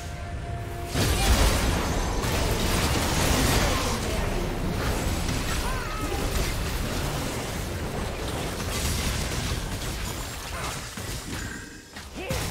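Magic blasts and explosions crackle and boom in a fast, busy fight.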